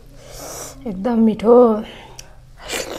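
A woman hums briefly with a closed mouth.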